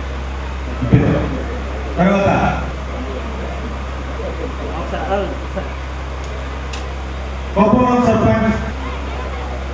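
A man speaks loudly through a microphone in an echoing hall.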